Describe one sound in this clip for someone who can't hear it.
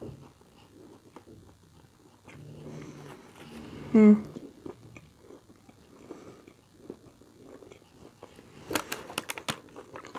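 A man chews food with wet smacking sounds, close up.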